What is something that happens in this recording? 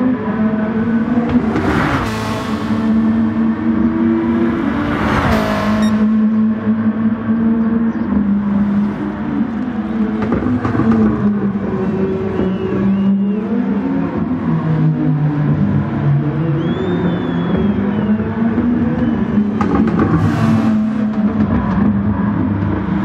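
A race car engine roars loudly, its pitch rising and falling as it shifts gears.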